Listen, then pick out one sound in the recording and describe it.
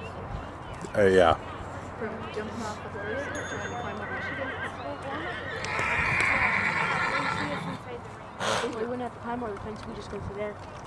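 A horse trots with soft hoofbeats on sand.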